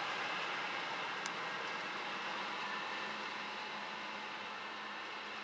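A locomotive approaches.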